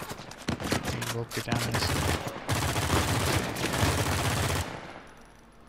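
An assault rifle fires in rapid bursts.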